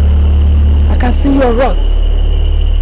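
A woman calls out in a loud, wavering voice.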